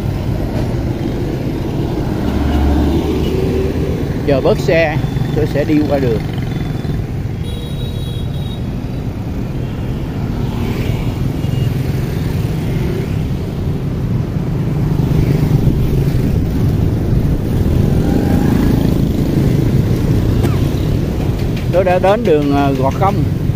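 Motorbike engines hum and buzz steadily as they pass along a busy street.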